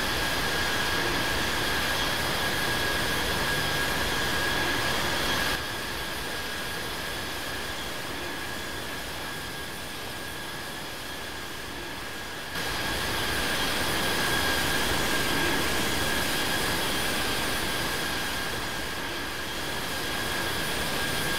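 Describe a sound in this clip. A jet engine roars steadily with a high whine.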